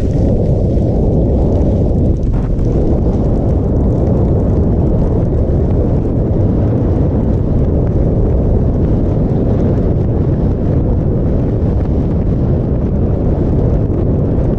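Wind roars loudly against a close microphone.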